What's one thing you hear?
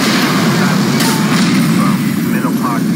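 An explosion booms and echoes.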